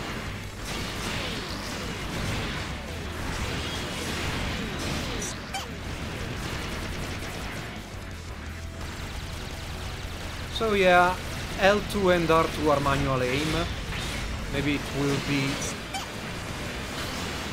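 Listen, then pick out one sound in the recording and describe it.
Laser beams fire with sharp zapping bursts.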